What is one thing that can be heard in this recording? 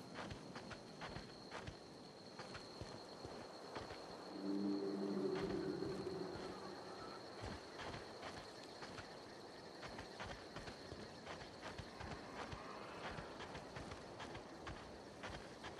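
Footsteps crunch steadily on rough, stony ground.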